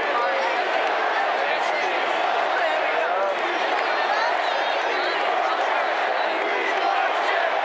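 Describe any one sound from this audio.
Many voices in the crowd shout and whoop nearby.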